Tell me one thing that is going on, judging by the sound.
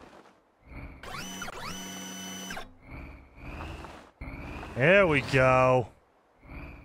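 A small electric motor whirs as a robotic arm moves.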